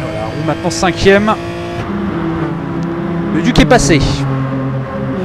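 A car's engine howls as it speeds past close by.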